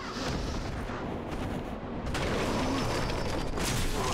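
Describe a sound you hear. Wooden boards crash and splinter.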